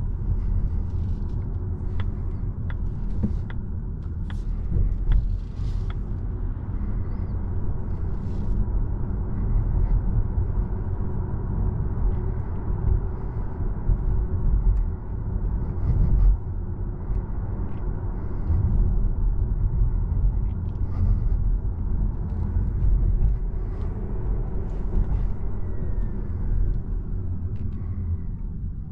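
A car's cabin rumbles low and steady as it drives along a street.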